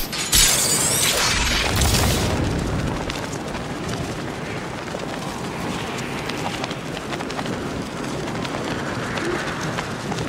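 Wind rushes loudly past a gliding figure, with a strong whoosh at the start.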